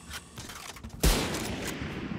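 A sniper rifle fires a single loud shot with a ringing echo.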